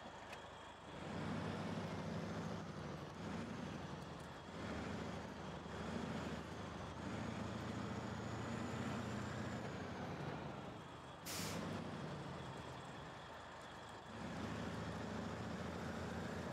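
A heavy truck's diesel engine rumbles and roars as it drives.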